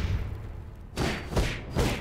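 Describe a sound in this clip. A large beast growls.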